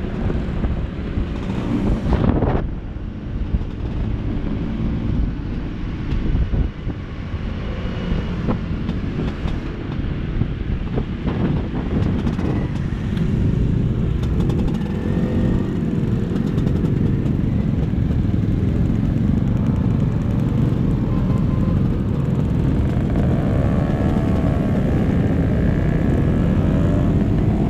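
Many motorcycle and scooter engines rumble and buzz close by.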